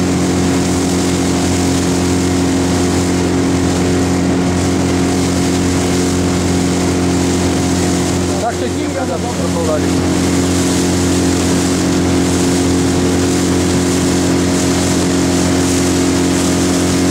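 A boat engine hums steadily close by.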